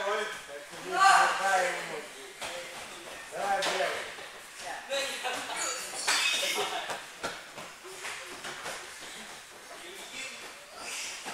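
Feet thud and slap on mats as people run and kick.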